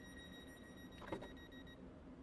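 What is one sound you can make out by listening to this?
Train doors slide shut with a thud.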